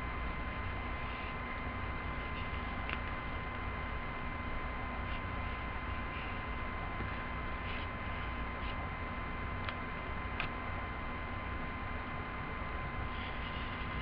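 A felt marker squeaks and scratches across paper in short strokes.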